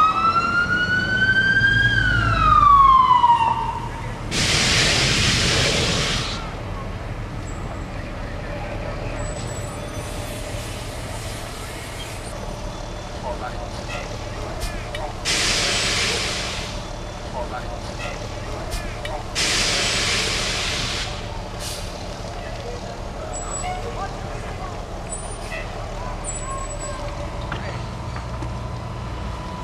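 Flames roar and crackle from a large fire.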